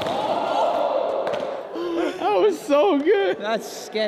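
A body thuds onto a hard floor.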